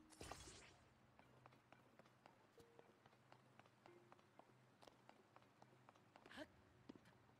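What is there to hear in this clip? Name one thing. Footsteps tap lightly on a stone floor.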